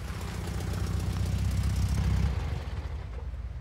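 Traffic rumbles past on a street.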